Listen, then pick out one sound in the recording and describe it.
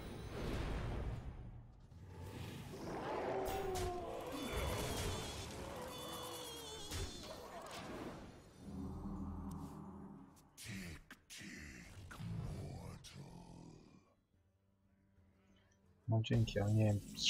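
Magical game sound effects whoosh, chime and burst.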